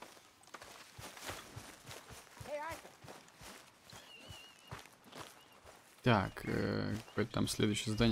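Footsteps tread through grass.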